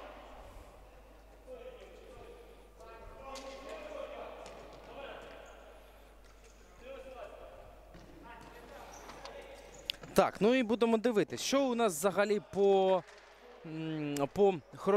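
Players shout and call out to each other in a large echoing hall.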